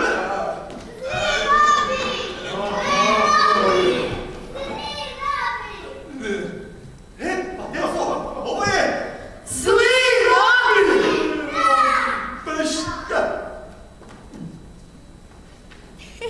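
A woman speaks brightly with animation.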